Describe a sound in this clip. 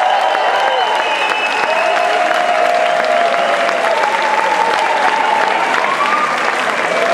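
A rock band plays loudly live in a large echoing hall.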